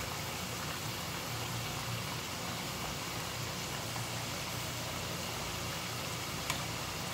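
Metal tongs scrape and clink against a frying pan.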